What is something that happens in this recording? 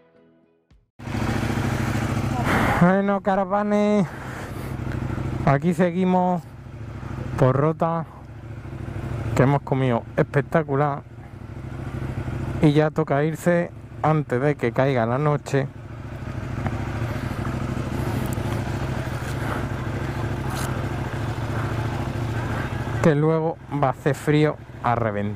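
A motorcycle engine idles steadily close by.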